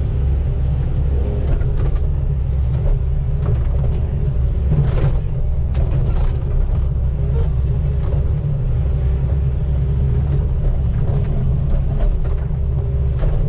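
An excavator bucket scrapes and digs into soil.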